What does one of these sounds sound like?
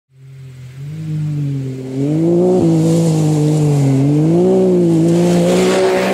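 An off-road buggy engine roars, growing louder as it approaches.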